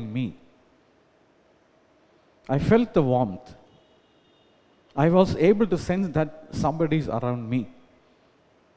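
A man speaks calmly into a microphone over loudspeakers, in an echoing hall.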